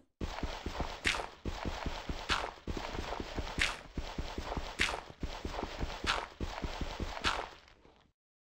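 Stone blocks crack and break apart at a steady pace.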